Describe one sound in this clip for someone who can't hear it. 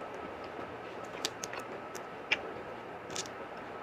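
Fingers squish and mix soft rice and curry up close.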